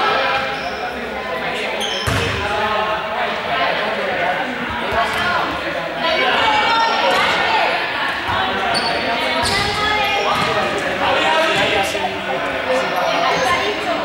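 Balls bounce on a hard floor.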